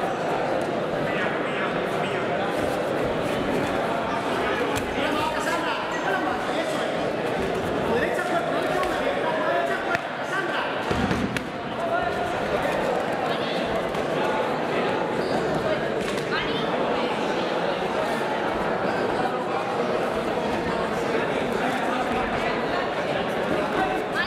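A crowd chatters and shouts throughout in a large echoing hall.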